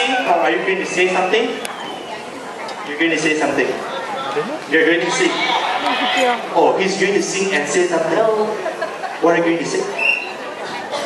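A young man speaks into a microphone with animation, heard through loudspeakers in a large hall.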